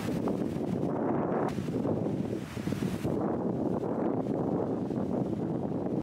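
Ocean waves crash and rush onto the shore.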